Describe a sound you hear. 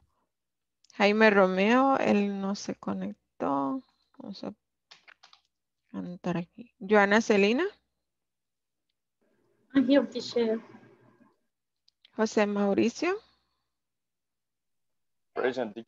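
A woman speaks calmly through a headset microphone on an online call.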